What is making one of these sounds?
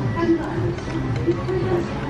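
Chopsticks clink against a metal pot.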